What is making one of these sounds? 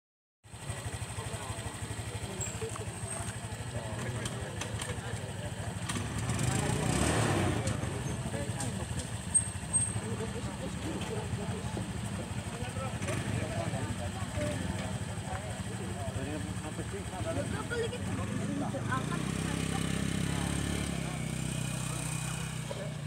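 Motorbike engines idle and rumble nearby.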